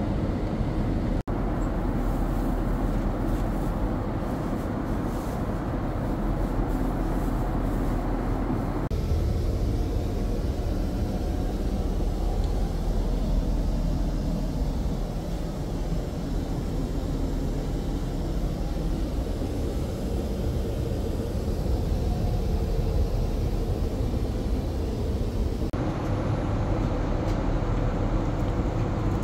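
An airliner's engines drone with a steady, low roar inside the cabin.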